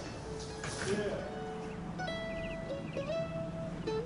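An acoustic guitar plays.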